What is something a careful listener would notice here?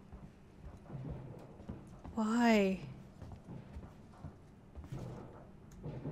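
A young man talks in short bursts close to a microphone.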